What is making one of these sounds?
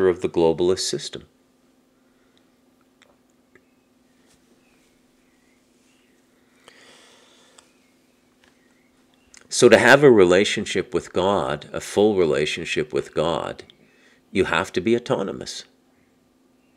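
A middle-aged man speaks calmly and close into a microphone, with pauses.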